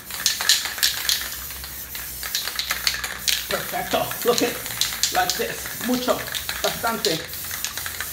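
Spray paint hisses from a can in short bursts.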